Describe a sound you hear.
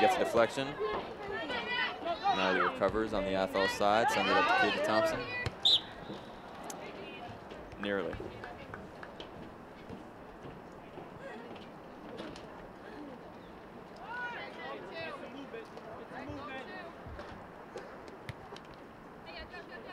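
A ball is kicked with a dull thud on an open field.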